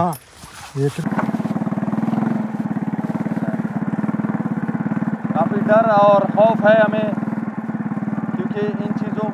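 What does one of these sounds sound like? A motorbike engine putters steadily close by.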